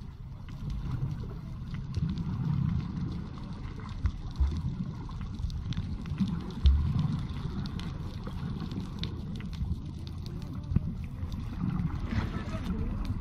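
Bubbles rise and burble close by.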